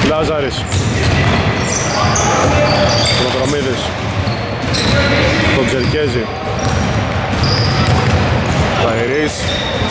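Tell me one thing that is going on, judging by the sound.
Sneakers squeak sharply on a hard court in a large echoing hall.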